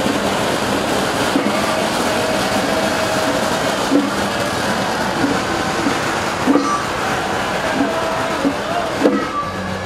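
A crowd chatters loudly outdoors.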